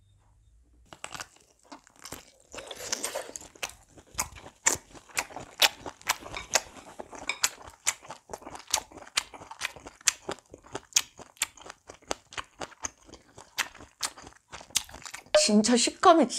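A young woman chews and slurps food noisily close to a microphone.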